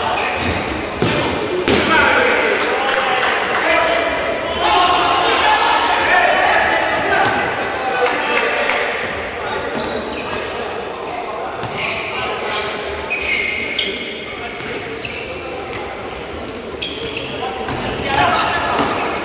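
A futsal ball is kicked on a hard court.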